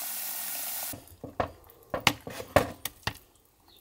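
A spoon stirs and knocks against a plastic bucket.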